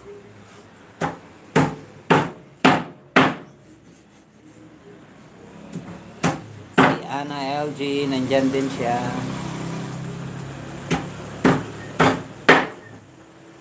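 A cleaver chops hard onto a wooden board in sharp, repeated blows.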